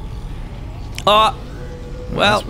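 A small creature lets out high, squeaky cries.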